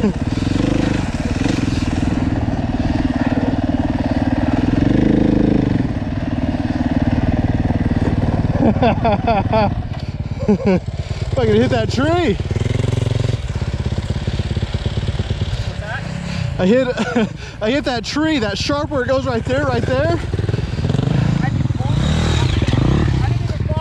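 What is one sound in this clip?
A dirt bike engine idles nearby with a steady rumble.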